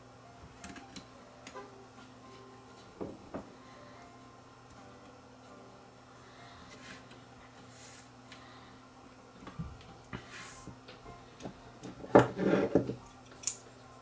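Small metal parts click and scrape as hands work inside an electronic chassis.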